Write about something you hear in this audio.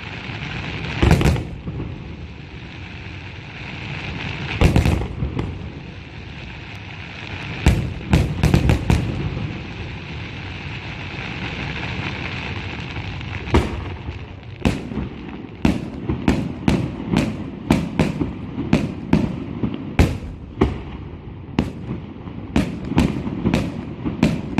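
Fireworks burst with loud booms that echo across the distance.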